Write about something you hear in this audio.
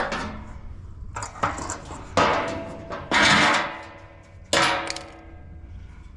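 A large metal lid scrapes and clanks against a metal frame.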